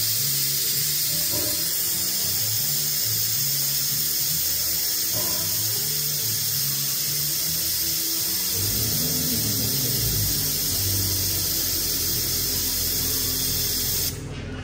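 An engine idles steadily close by.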